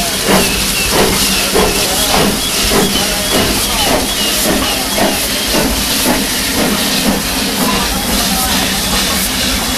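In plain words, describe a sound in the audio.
Steel wheels squeal and clank on rails as a train rolls slowly past.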